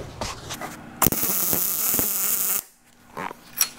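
An arc welder crackles and hisses briefly.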